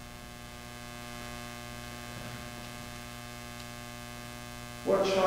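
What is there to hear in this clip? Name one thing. A man speaks quietly in a large echoing hall.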